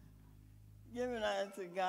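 A woman begins speaking through a microphone.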